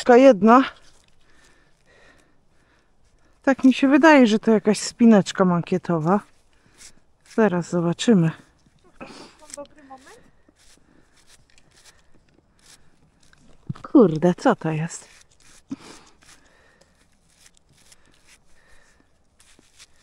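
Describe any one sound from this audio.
Hands rustle and crumble soil and roots close by.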